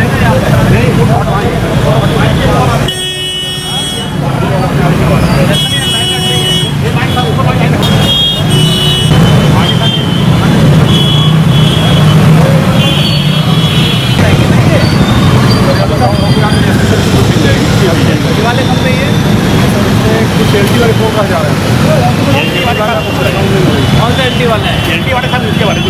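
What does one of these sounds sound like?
Several men talk at once nearby, outdoors.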